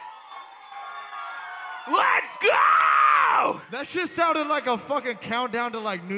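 A man raps loudly through a microphone.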